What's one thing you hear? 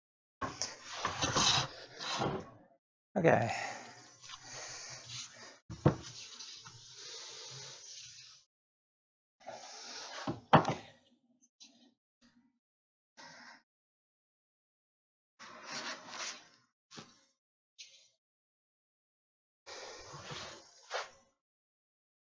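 A hand plane shaves wood in long rasping strokes.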